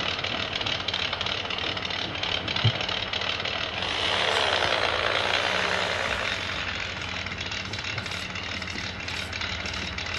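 A toy truck's electric motor whirs as the truck drives across a hard surface.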